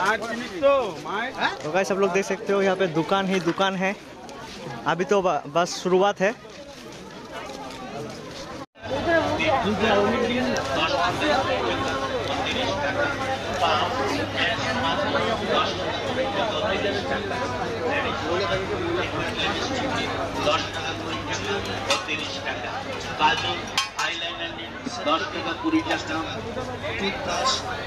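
A busy crowd chatters and murmurs all around outdoors.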